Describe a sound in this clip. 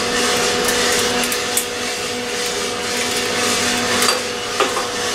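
A coffee roasting machine hums and whirs steadily.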